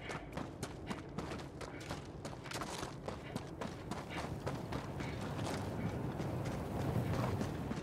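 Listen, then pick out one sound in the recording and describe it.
Footsteps crunch steadily over frozen ground.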